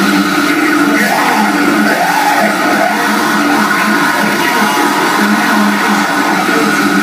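A man vocalizes loudly into a microphone.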